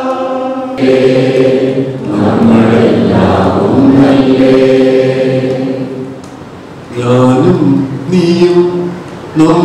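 A man speaks with animation into a microphone over loudspeakers in a large echoing hall.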